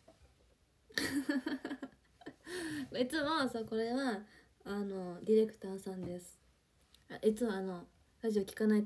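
A young woman speaks close to a microphone with animation.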